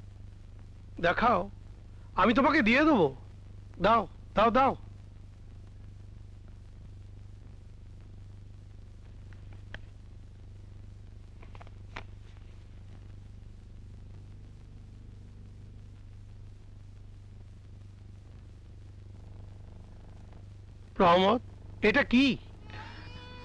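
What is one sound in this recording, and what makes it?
A man speaks firmly close by.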